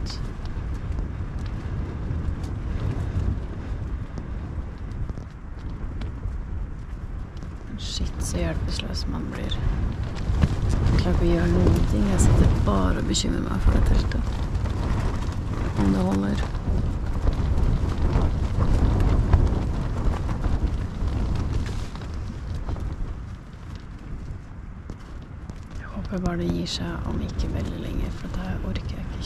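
Wind buffets and rustles throughout.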